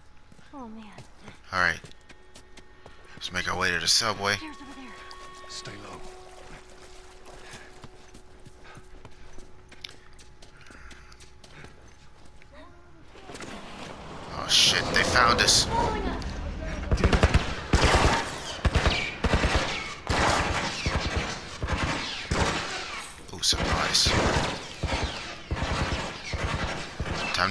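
Footsteps run quickly on hard ground and stairs.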